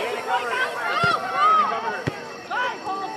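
A soccer ball thumps as it is kicked.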